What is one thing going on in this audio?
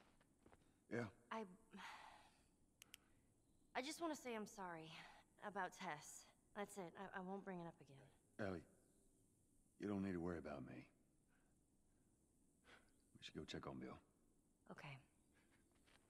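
A young girl answers briefly in a soft voice.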